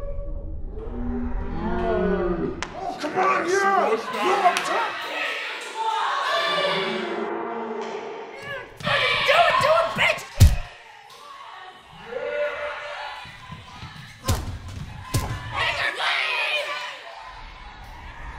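Several young women scream and shriek wildly.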